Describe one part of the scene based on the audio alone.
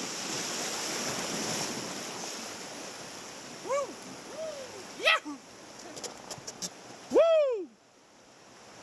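White water rushes loudly around a raft and then fades.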